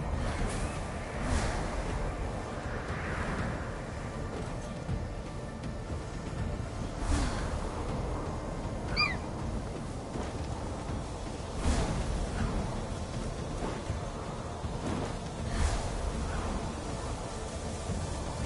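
Wind rushes steadily past in flight.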